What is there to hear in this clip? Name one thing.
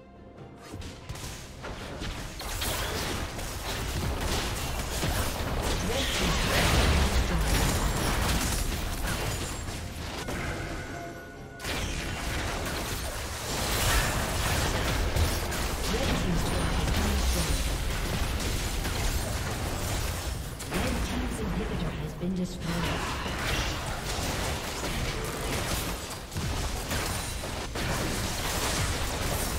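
Video game combat sounds of magic spells and strikes clash.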